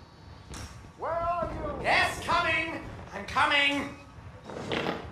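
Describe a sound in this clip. A man calls out in an agitated voice.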